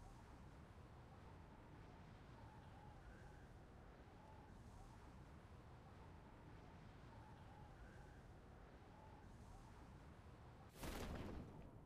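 Wind rushes steadily during a fall through the air.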